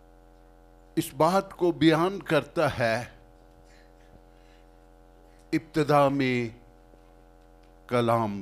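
An elderly man speaks with animation through a microphone, heard over a loudspeaker.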